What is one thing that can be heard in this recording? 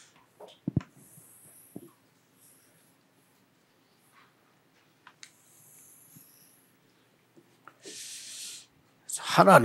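Chalk scrapes across a board.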